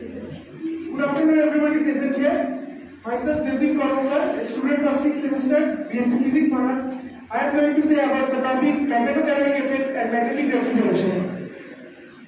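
A young man speaks calmly into a microphone in a room with some echo.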